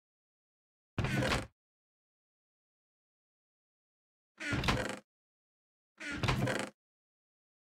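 A wooden chest creaks open and shut.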